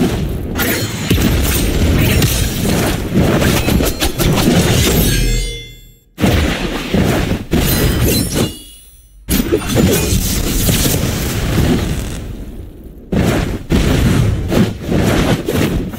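Heavy blows and magic blasts crash and thud in quick bursts.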